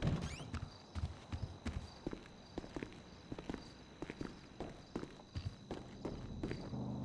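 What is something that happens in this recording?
Footsteps thud on a hard floor and stairs.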